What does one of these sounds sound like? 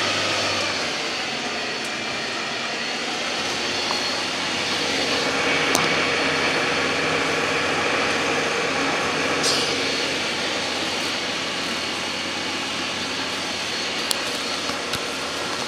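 A boat's engine rumbles steadily from inside a cabin.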